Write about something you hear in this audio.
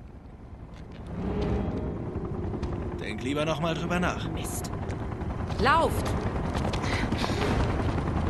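A helicopter drones overhead, growing louder.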